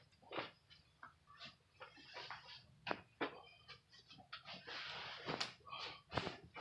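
Clothing rustles close by as a man moves about.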